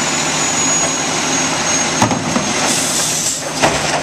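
A plastic bin bangs down onto the ground.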